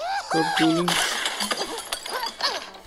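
Wooden and glass blocks crash and shatter.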